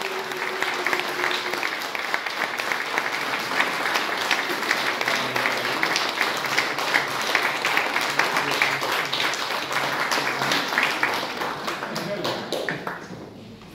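A crowd applauds in an echoing room.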